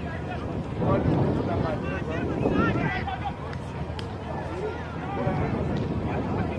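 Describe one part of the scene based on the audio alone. A crowd of spectators calls out and chatters outdoors.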